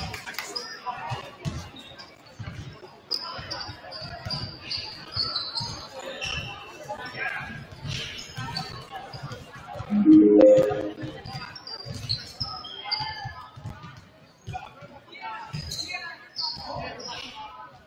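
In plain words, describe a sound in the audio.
Basketballs bounce and thud on a wooden court in a large echoing gym.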